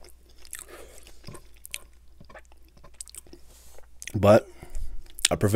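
A man licks and smacks his fingers close to a microphone.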